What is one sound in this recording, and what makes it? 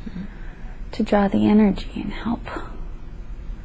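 A young woman murmurs drowsily, close by.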